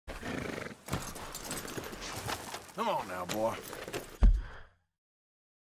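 Horse hooves clop slowly on gravel.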